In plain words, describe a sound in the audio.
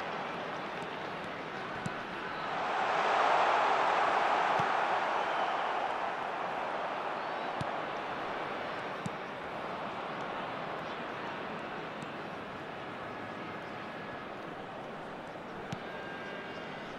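A stadium crowd roars steadily, swelling loudly for a few seconds and then settling.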